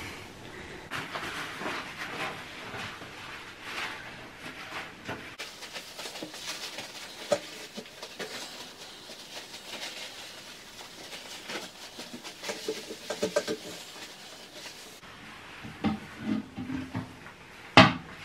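Rubber gloves rub and wipe against a toilet.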